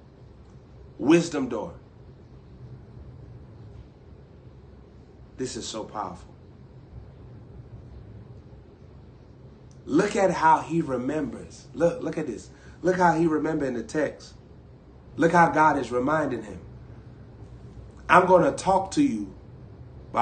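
A young man speaks close to a microphone, in short bursts with pauses, growing more animated.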